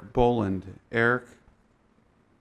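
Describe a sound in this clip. A young man speaks briefly and calmly into a microphone.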